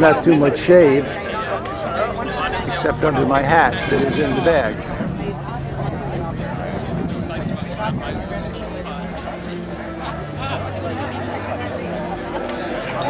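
A crowd of men and women chatters nearby outdoors.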